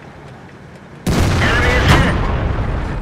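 A heavy shell explodes with a loud boom that rumbles on.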